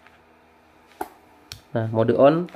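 A plastic plug clicks into a socket.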